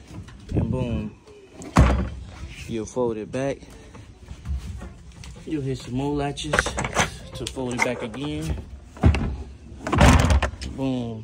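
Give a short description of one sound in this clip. A hard panel knocks and clacks as it is folded over.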